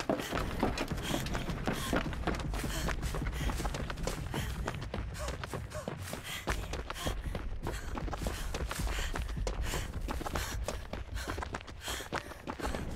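Quick footsteps run across wooden boards and ground.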